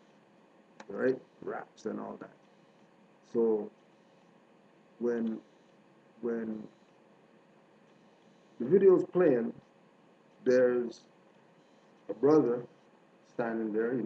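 A man speaks calmly in short phrases with pauses, close to a microphone.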